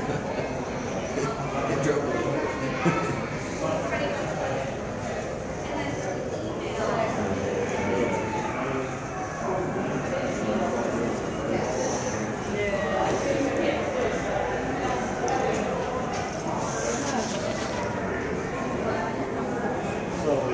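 A crowd of adult visitors chatters in a large indoor hall.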